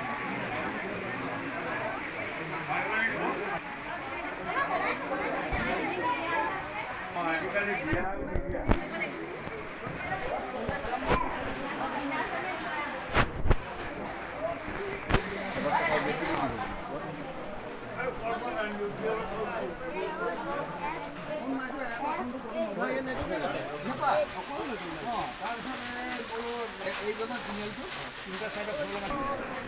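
Many people chatter nearby in an indoor crowd.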